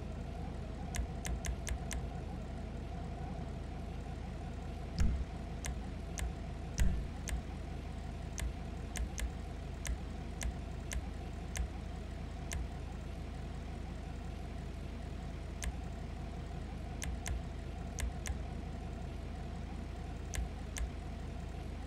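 Short soft clicks tick now and then as menu choices change.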